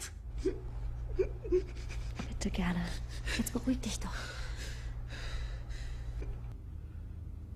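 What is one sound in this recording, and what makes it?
A young woman sobs and cries.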